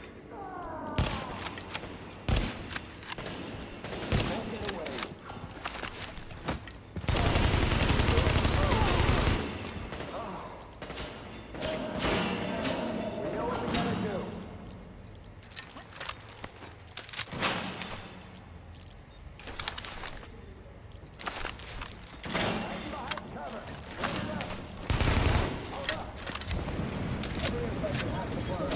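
Rifle shots ring out sharply, one after another.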